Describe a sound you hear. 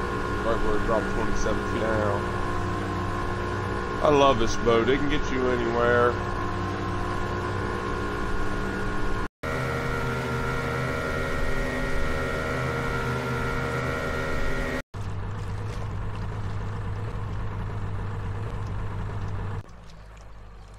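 A motorboat engine drones steadily as the boat speeds across water.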